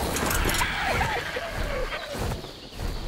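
A large bird screeches.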